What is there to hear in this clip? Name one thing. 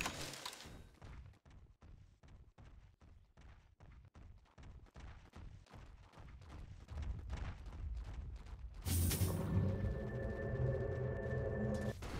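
Game characters clash in combat with sharp hits.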